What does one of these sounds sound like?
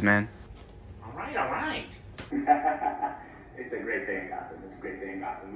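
A young man talks through a loudspeaker.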